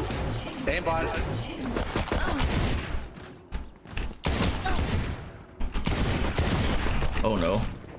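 Pistol shots crack sharply several times.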